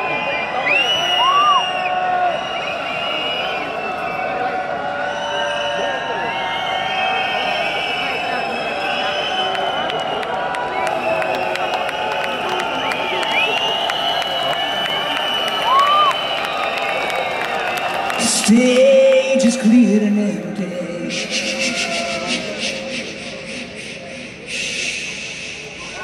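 A rock band plays loudly through big loudspeakers outdoors.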